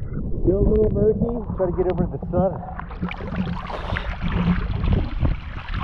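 A man breathes loudly through a snorkel.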